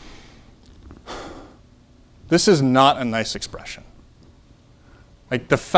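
A man lectures, speaking clearly and with pauses.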